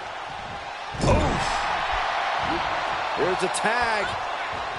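Blows thud as wrestlers brawl.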